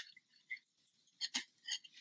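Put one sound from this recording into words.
Metal knitting needles click softly against each other.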